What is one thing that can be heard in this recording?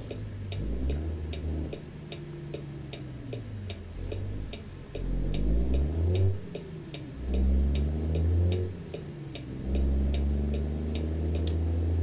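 A truck's diesel engine rumbles, its revs rising and dropping with each gear change.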